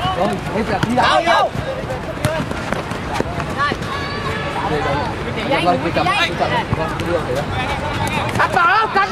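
Young men shout and call out across an open pitch.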